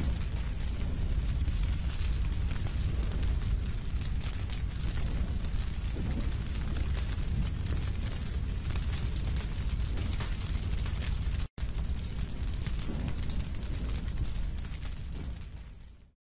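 A fire roars and crackles, then fades away.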